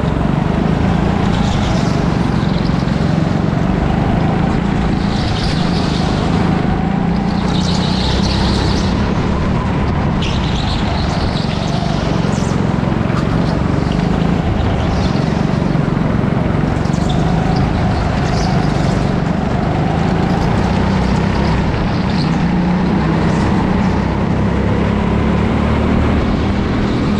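A go-kart engine drones loudly close by, rising and falling as it speeds up and slows.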